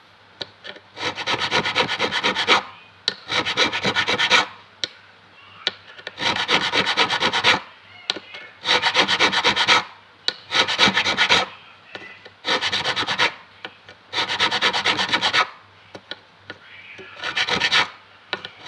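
A file rasps back and forth over a metal fret in short bursts.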